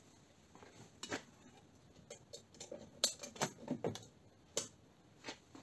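A small metal door clicks and taps shut.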